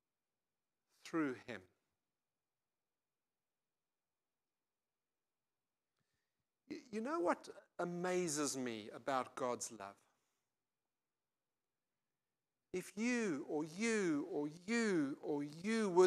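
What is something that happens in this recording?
An older man speaks with animation through a microphone, pausing between phrases.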